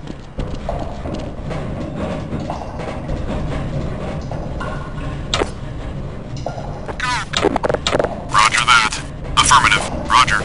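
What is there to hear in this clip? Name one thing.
Footsteps clang on metal grating.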